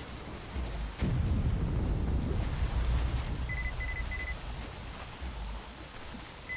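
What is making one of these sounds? A deep explosion booms and rumbles nearby.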